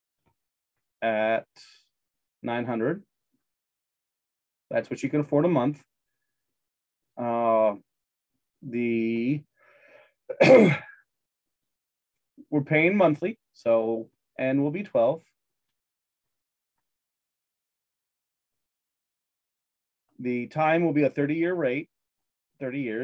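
A man speaks calmly into a microphone, explaining in short bursts with pauses.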